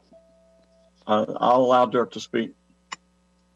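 An elderly man speaks briefly over an online call.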